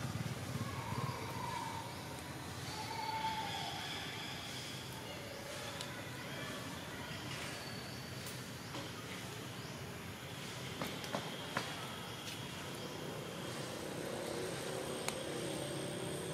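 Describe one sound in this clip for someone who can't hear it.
Dry broom twigs rustle and scrape against a branch.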